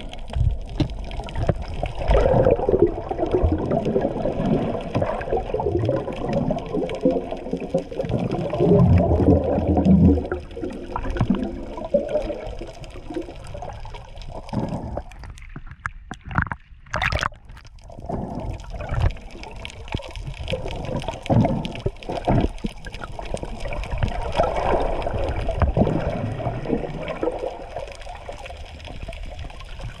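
Water rumbles and gurgles, muffled as if heard underwater.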